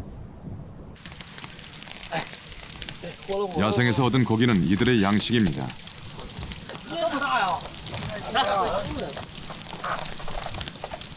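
A wood fire crackles and pops up close.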